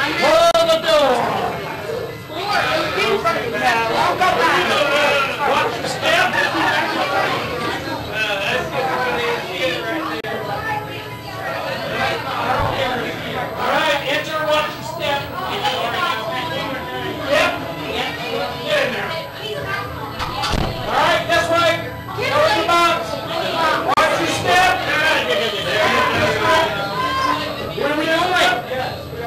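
Young women talk and whisper with excitement close by.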